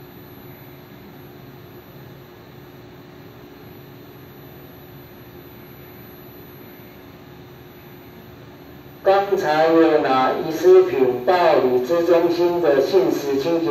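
A train idles with a low, steady hum.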